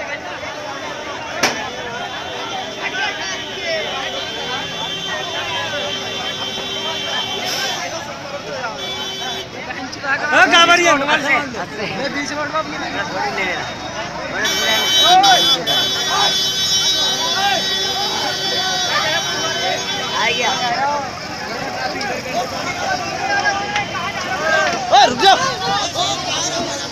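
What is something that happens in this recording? A large crowd of men chatters and shouts outdoors.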